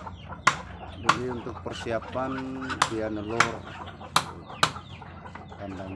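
A hammer knocks on wood in sharp, repeated blows.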